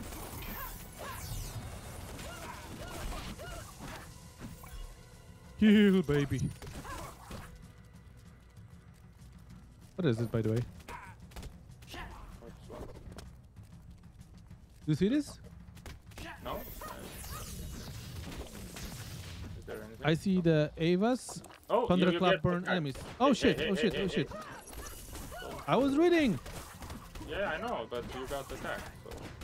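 Magical zaps and sword slashes ring out in a fast fight.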